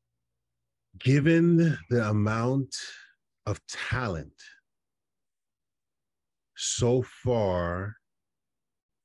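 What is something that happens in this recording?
A man talks with animation over an online call.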